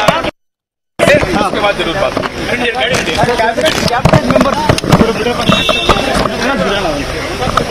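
Several men talk over each other in a noisy crowd.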